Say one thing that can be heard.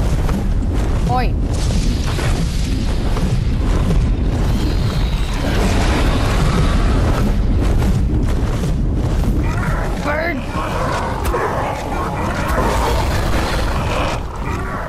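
A large winged creature screeches.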